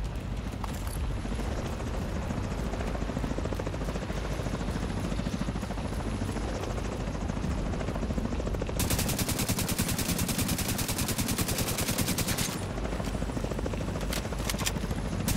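A helicopter's rotor thuds and drones overhead.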